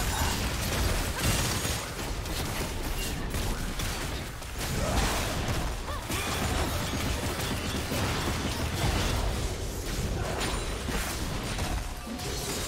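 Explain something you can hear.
Magic blasts and clashing hits burst rapidly in a fast fight.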